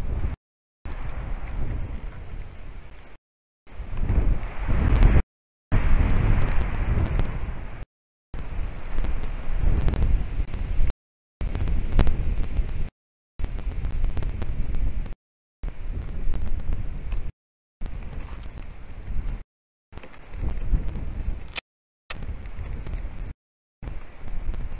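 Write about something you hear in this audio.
Wind buffets a microphone outdoors in gusts.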